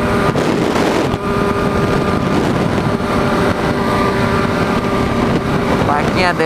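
A motorcycle engine hums steadily up close.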